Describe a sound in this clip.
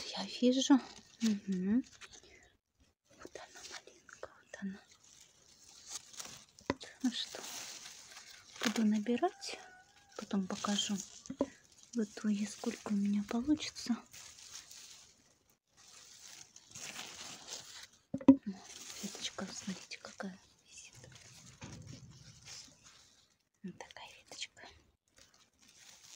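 Leaves rustle as a hand brushes through a bush.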